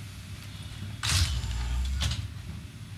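A heavy sliding door opens with a loud pneumatic hiss.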